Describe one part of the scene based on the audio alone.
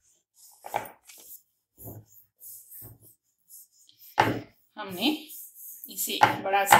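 A wooden rolling pin rolls over soft dough on a wooden board.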